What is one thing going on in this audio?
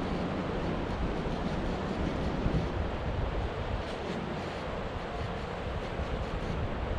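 Wind blows hard and buffets the microphone outdoors.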